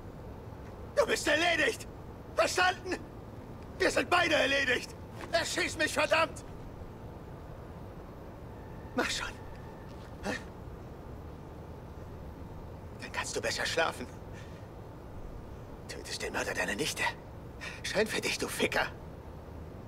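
A man speaks tensely and angrily nearby.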